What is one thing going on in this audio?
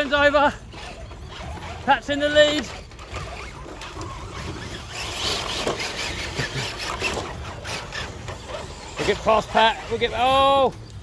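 Small electric motors whir as toy trucks crawl along.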